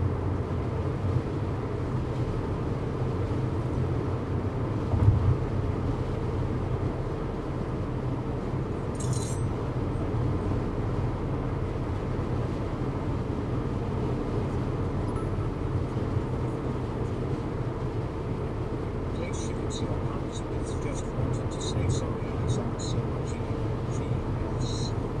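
Tyres roll steadily on a highway.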